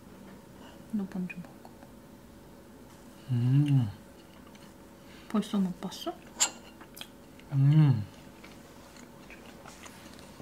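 A fork clinks and scrapes against a ceramic plate.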